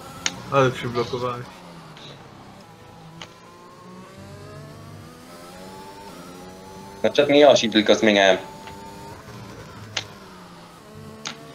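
A racing car engine revs hard, rising in pitch and dropping with each gear change.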